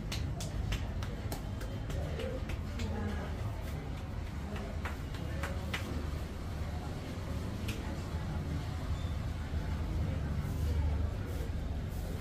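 Fingers rub and scratch through hair close by.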